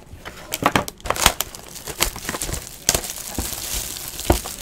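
Plastic wrap crinkles as a box is handled.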